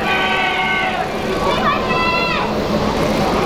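Young women call out cheerful greetings in high voices nearby.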